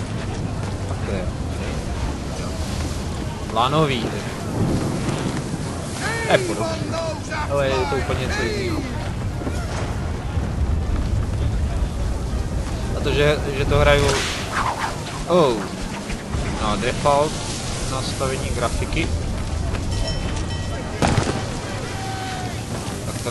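Stormy wind roars steadily.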